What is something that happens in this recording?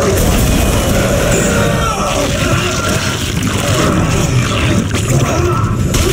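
A creature snarls and screeches during a struggle.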